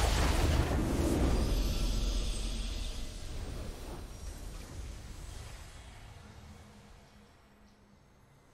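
A triumphant victory fanfare swells and slowly fades away.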